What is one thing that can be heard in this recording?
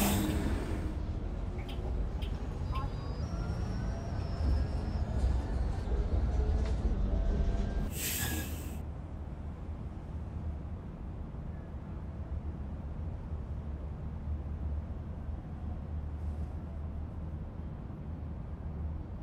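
A bus engine rumbles low and steady, quieting as the bus comes to a stop.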